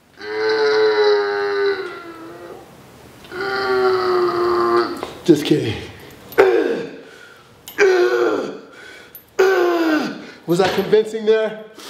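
A man groans and strains loudly, close by, in long drawn-out bursts.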